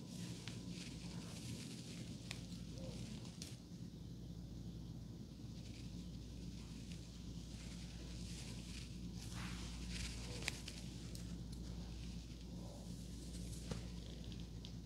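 A comb rustles through hair.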